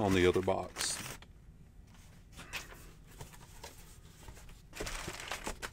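Packing paper crinkles and rustles.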